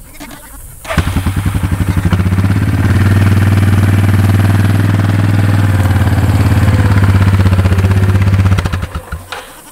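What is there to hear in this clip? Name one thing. An all-terrain vehicle's engine starts and idles with a steady rumble.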